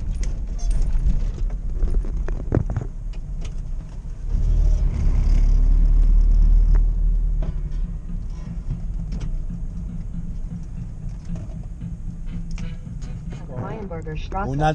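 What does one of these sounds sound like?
A UAZ van's body and cab fittings rattle over the road.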